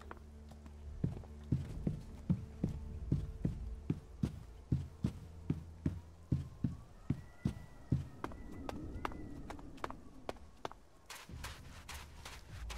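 A game character's footsteps thud on rock at a steady pace.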